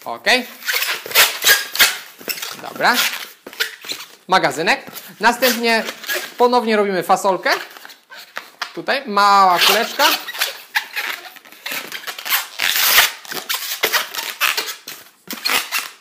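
Rubber balloons squeak and rub as they are twisted.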